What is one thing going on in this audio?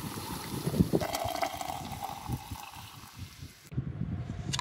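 Water pours into a jug, its pitch rising as it fills.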